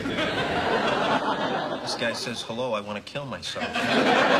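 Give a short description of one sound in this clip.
A second young man talks casually.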